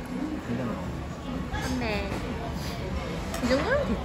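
Two beer glasses clink together in a toast.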